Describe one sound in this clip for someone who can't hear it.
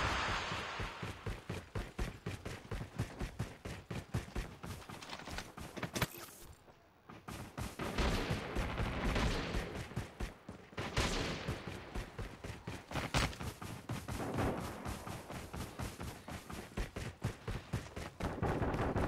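Rapid footsteps run over dirt and grass.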